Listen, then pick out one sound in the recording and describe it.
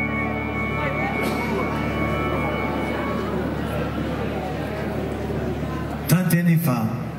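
Keyboard music plays loudly through loudspeakers.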